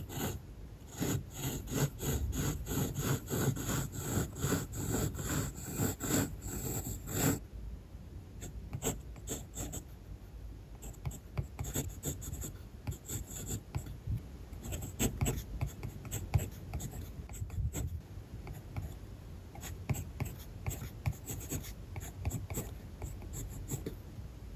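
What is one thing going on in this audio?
A pencil scratches across paper in quick strokes, close up.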